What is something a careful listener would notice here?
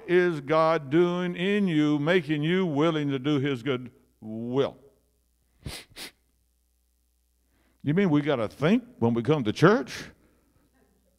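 An elderly man speaks into a microphone through loudspeakers in an echoing room, with pauses.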